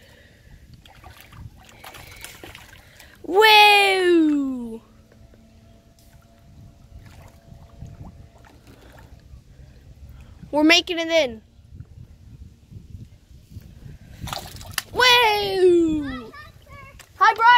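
A hooked fish splashes at the water's surface.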